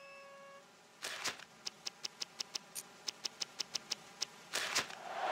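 Menu selections click in quick, even ticks.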